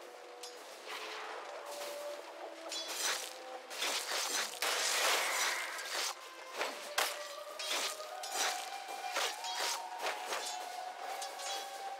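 Fantasy game combat effects clash and crackle as spells hit.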